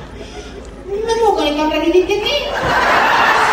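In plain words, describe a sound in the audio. A clown speaks in a high, comic voice through a microphone.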